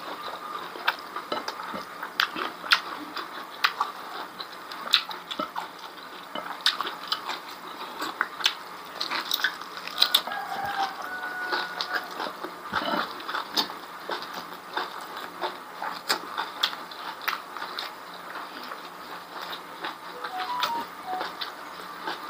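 A man chews food with wet smacking sounds close to a microphone.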